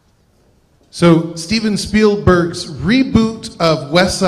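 A man speaks loudly into a microphone over the hall's speakers.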